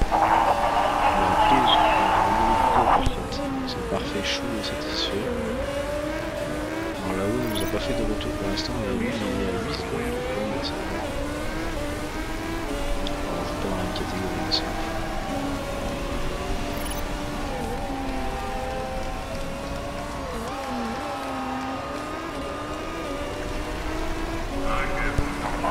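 Race car engines whine as cars speed past, rising and falling in pitch.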